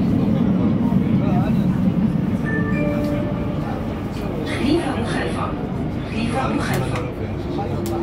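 A metro train rumbles steadily along the track.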